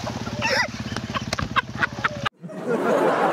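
A person splashes through the water.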